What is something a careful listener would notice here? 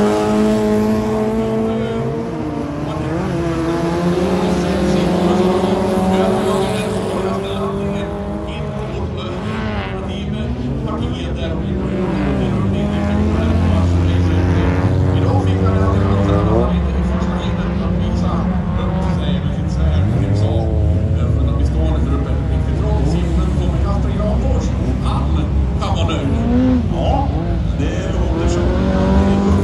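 Racing car engines roar around a track outdoors.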